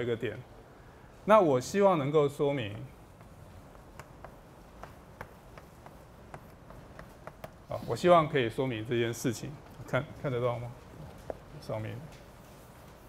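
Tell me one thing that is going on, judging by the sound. A middle-aged man lectures calmly through a microphone.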